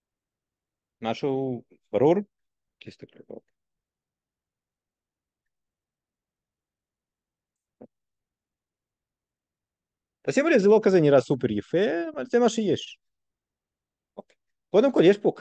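An older man speaks calmly into a microphone in an online lecture, in short phrases with pauses.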